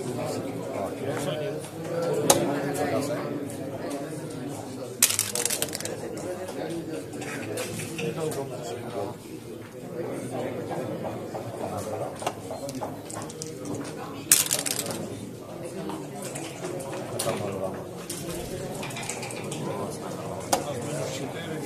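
Game checkers click as they are moved across a board.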